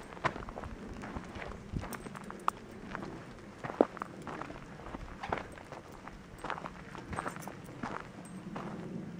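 A small dog's paws patter on dry, gritty dirt outdoors.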